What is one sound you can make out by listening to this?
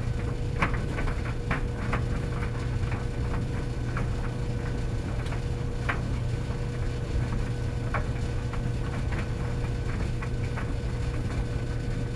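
Clothes tumble and thump inside a dryer's metal drum.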